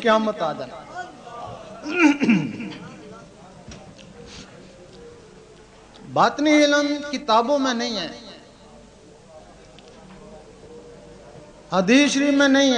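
A man chants in a long, melodic voice through a loudspeaker, with pauses between phrases.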